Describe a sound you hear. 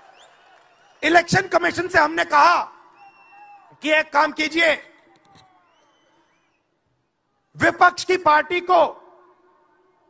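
A man speaks forcefully into a microphone over loudspeakers.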